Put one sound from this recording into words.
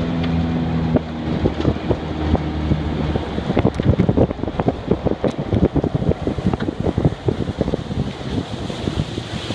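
River water splashes against the boat's hull.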